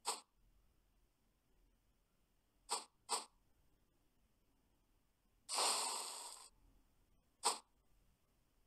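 Short, sharp sound effects from a game ring out now and then.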